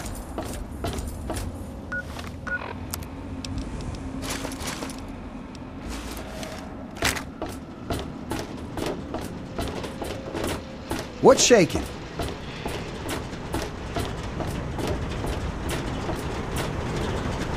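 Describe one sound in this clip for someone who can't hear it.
Footsteps clank on a metal walkway.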